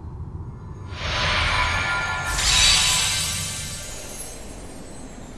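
A bright magical shimmer swells and sparkles, then slowly fades.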